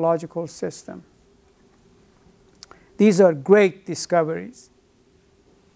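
An elderly man speaks calmly in short phrases, close by.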